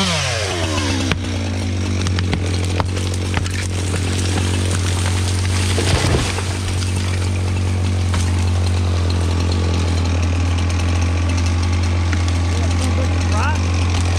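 A chainsaw idles steadily.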